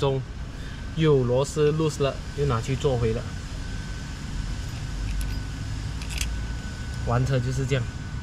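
A metal bolt clinks against a steel part.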